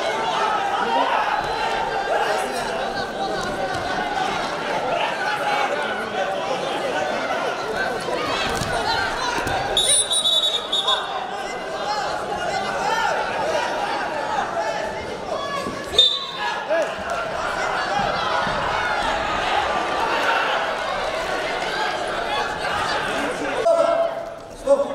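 A large crowd cheers and shouts in an echoing hall.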